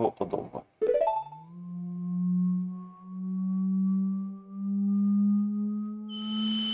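A low, steady humming tone swells and slowly rises.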